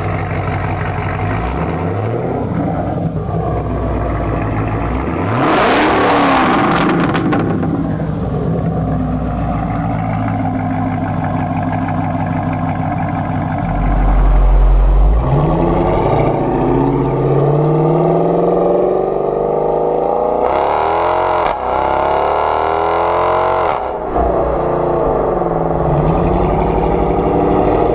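A sports car engine rumbles loudly through its exhaust at idle.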